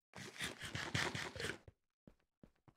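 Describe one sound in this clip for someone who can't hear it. A game character munches food with crunchy chewing.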